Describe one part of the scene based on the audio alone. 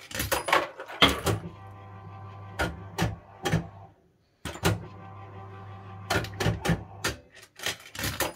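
A fruit machine's reels clunk to a stop with sharp clicks.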